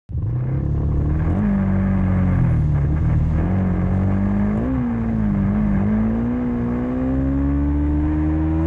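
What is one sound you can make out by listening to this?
A motorcycle engine hums close by and revs higher as it speeds up.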